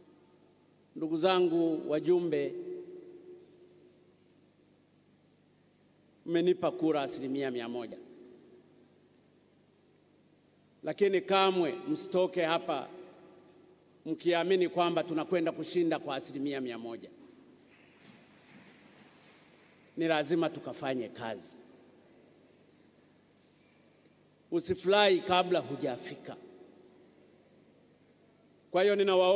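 An older man speaks forcefully into a microphone in pauses, his voice echoing through a large hall.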